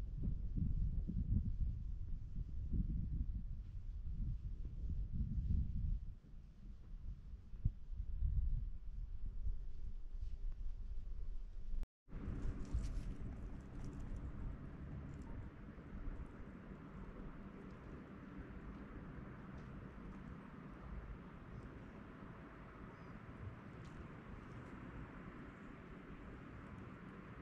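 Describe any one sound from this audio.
Wind gusts across an open hillside, buffeting the microphone.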